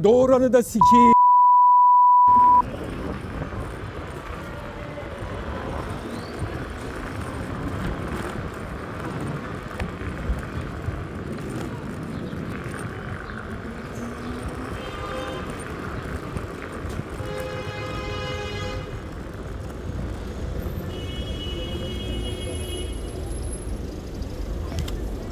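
Footsteps thud on paving stones.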